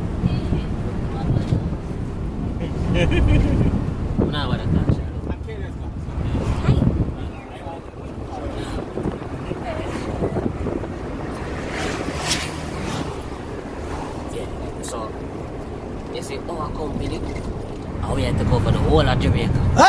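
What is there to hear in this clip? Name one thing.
A vehicle engine rumbles steadily inside a moving bus.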